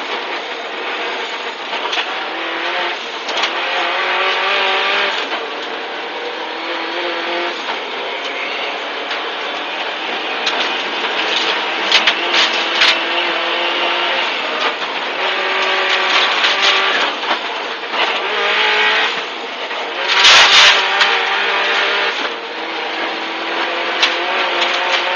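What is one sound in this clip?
A man calls out pace notes rapidly over an intercom.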